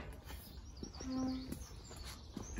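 A metal gate creaks as it swings.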